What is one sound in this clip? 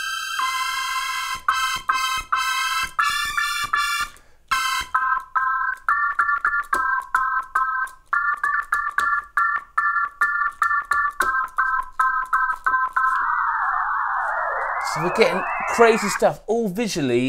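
A small electronic synthesizer plays a quick, bright beeping melody.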